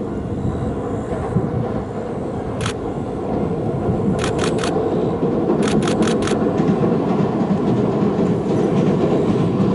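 A train rumbles across a steel bridge in the distance, growing louder.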